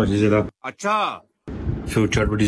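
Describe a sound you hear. A young man speaks with emotion.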